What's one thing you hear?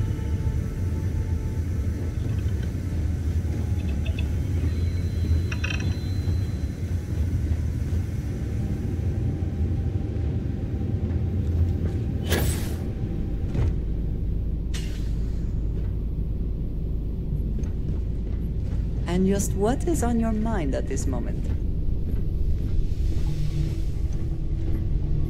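A low mechanical hum drones steadily.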